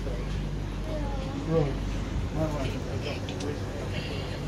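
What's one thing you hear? A man talks briefly nearby.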